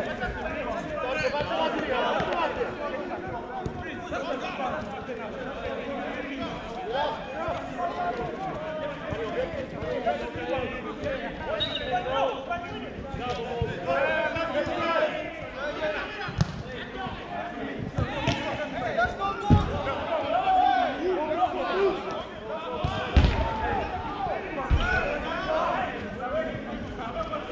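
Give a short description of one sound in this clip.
Adult men call out to each other across an outdoor pitch.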